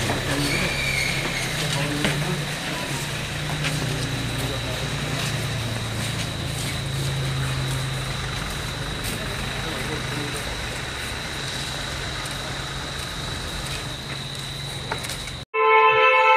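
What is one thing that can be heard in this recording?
Several men talk in low voices nearby.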